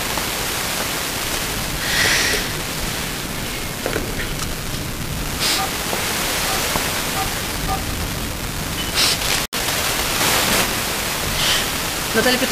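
Radio static hisses steadily with brief crackles.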